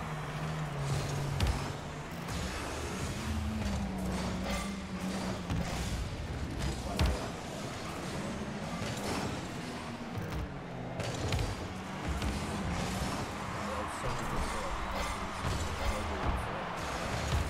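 A ball is struck with sharp thuds.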